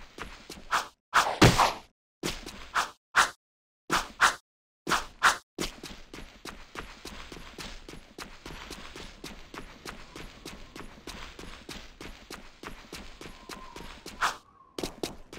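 Quick footsteps patter over grass.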